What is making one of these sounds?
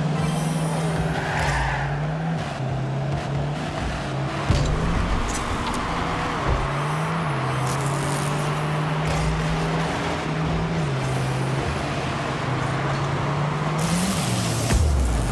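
A car engine hums steadily, its pitch stepping up and down.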